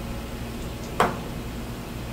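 A knife is set down on a cutting board with a sharp knock.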